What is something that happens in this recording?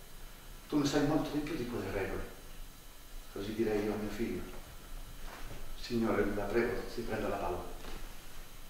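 An elderly man speaks calmly on a stage.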